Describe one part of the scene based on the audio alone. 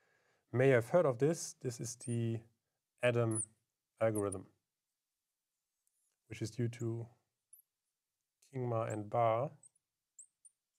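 A man talks calmly and close to a microphone, in short phrases with pauses.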